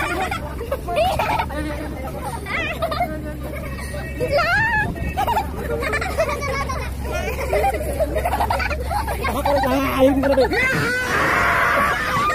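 Several young men talk and laugh loudly nearby.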